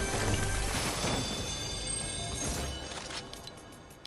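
A chest opens with a shimmering, chiming sound.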